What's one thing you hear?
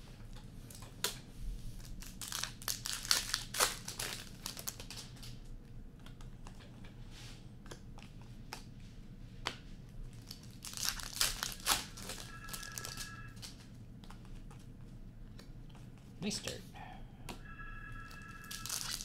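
Plastic card wrappers crinkle and rustle as they are handled.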